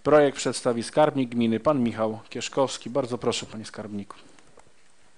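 A man speaks calmly through a microphone in a large room.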